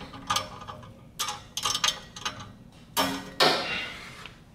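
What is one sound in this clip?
A ratchet wrench clicks rapidly as it turns a bolt.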